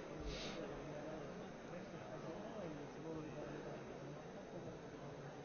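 Many men and women murmur and chatter in a large echoing hall.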